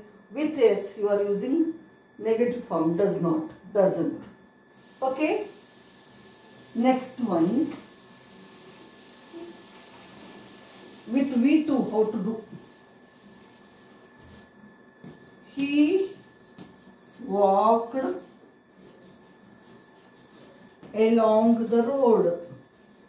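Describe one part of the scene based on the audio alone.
A middle-aged woman speaks calmly and clearly nearby, in short phrases with pauses.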